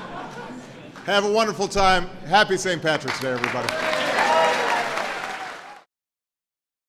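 A man speaks to the crowd through a microphone.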